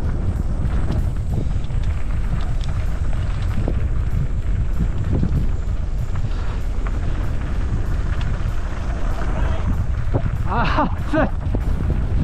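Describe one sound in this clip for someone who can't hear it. A bike's frame and chain rattle over bumps.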